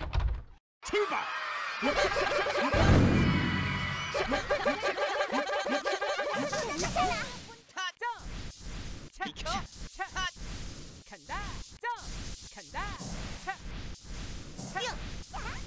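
Game sound effects whoosh and chime during a race.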